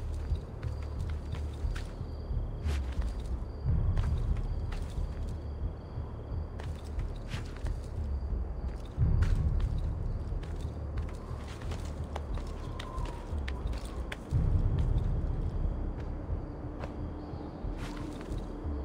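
Hands and feet knock and scrape on stone during a quick climb.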